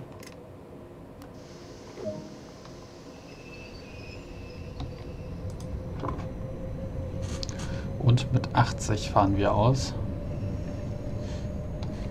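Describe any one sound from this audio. An electric multiple unit rumbles along the rails, heard from the cab, its rumble building as it gathers speed.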